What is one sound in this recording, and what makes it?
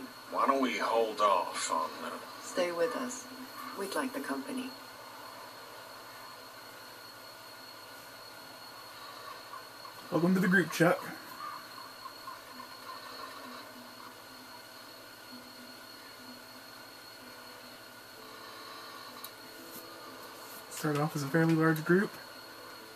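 A man speaks calmly, heard through a television speaker.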